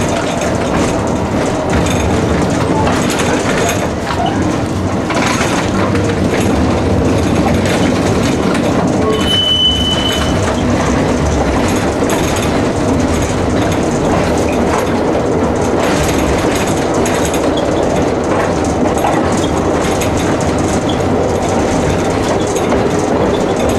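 Tram wheels clatter over rail joints.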